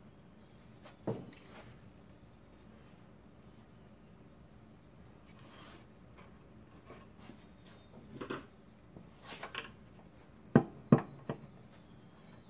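Metal tools clink and knock against engine parts.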